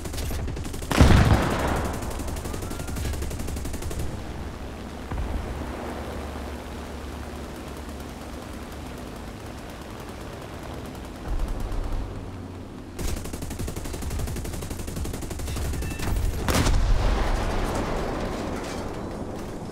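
A bomb explodes with a deep boom.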